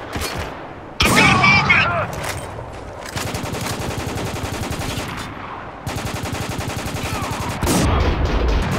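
A sniper rifle fires loud single shots.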